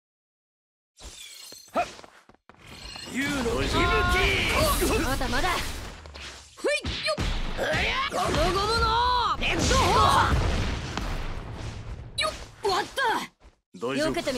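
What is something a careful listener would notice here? Heavy blows and blasts crash in quick succession.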